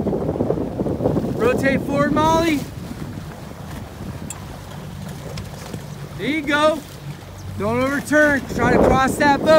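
Small waves slap and splash against a boat.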